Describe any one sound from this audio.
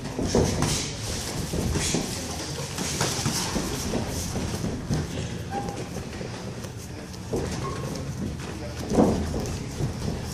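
Bare feet shuffle on a ring canvas.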